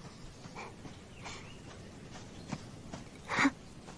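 Footsteps crunch softly on a dirt path outdoors.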